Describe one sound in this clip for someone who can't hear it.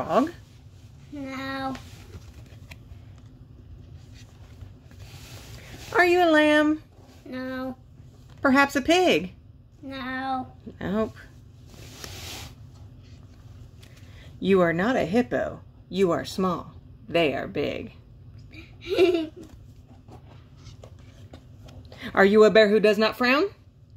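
Stiff cardboard pages of a book are turned with a soft flap.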